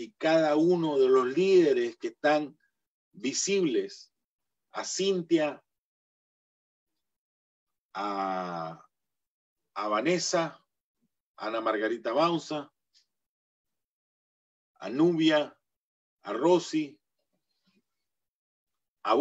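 A middle-aged man speaks with animation over an online call, in short bursts with pauses.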